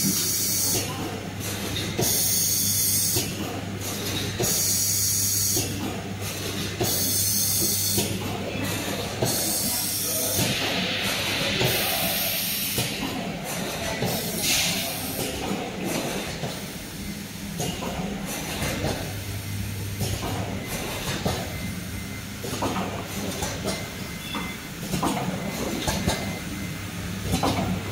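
Factory machines hum and whir steadily nearby.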